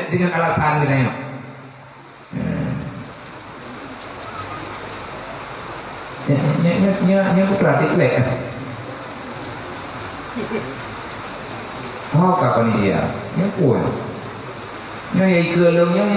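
A man speaks with animation into a microphone, heard through a loudspeaker in a reverberant hall.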